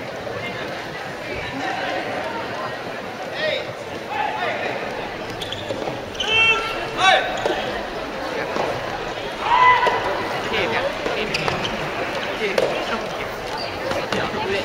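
Rackets hit a tennis ball with sharp pops.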